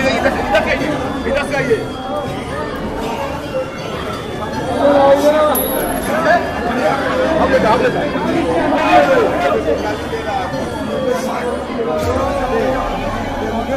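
A crowd of men talk over one another close by.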